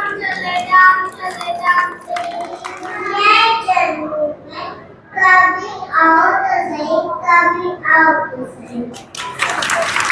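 Young children sing together through microphones and loudspeakers in a large hall.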